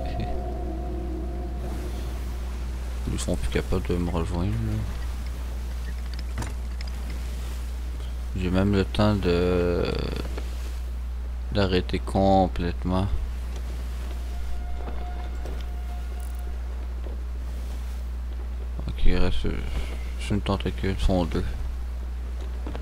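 Waves wash and splash against a wooden ship.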